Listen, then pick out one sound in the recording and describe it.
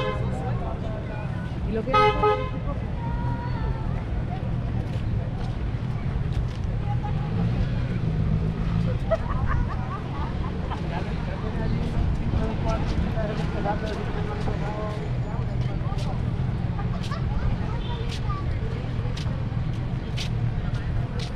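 Footsteps tap on paving stones outdoors.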